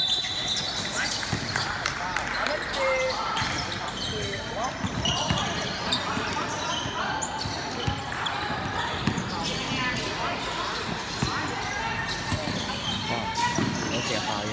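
A crowd of young players and spectators chatter and call out in a large echoing hall.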